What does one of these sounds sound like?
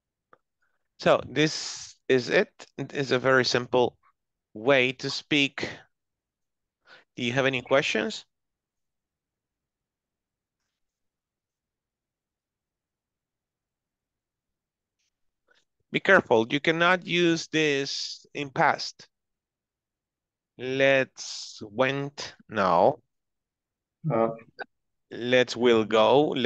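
A man speaks calmly over an online call, pausing between phrases.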